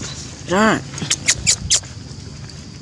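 A baby macaque cries out in shrill squeals.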